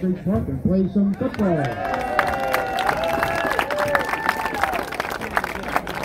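A crowd cheers and whistles outdoors.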